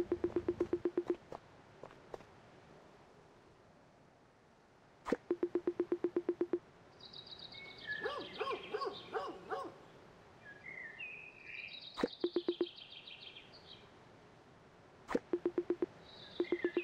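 A video game plays quick rows of short pitched beeps.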